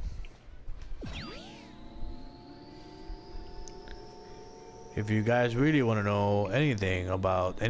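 A hoverboard powers up with a swooping whoosh and then hums steadily.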